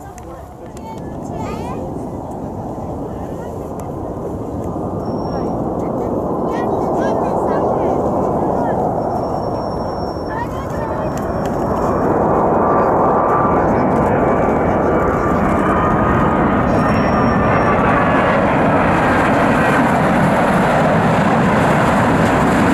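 A jet airliner's engines roar as it approaches and grows steadily louder.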